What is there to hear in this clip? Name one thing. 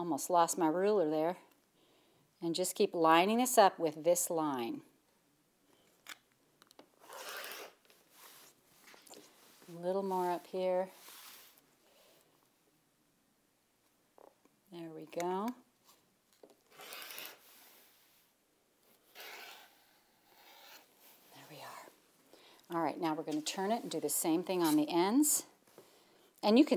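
A middle-aged woman talks calmly and clearly into a microphone.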